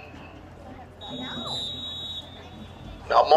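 A referee's whistle blows briefly.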